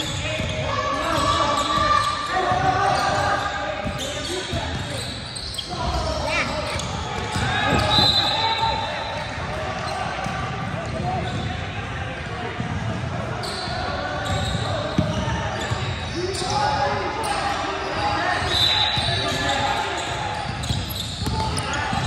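Sneakers squeak sharply on a hardwood court in a large echoing gym.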